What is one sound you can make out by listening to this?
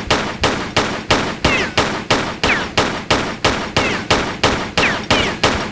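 Pistols fire rapidly in a steady rhythm, each shot echoing.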